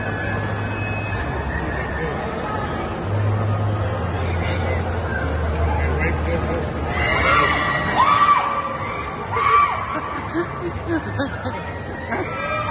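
An amusement ride whirs and rumbles steadily.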